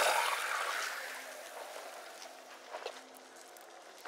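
Water splashes as footsteps wade through it.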